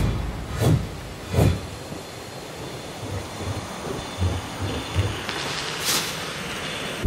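Footsteps thud softly over rocky ground.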